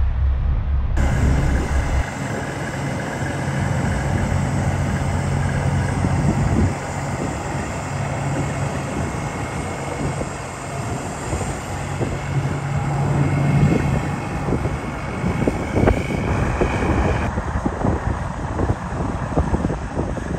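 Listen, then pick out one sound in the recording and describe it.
A heavy truck engine rumbles as the truck rolls slowly past.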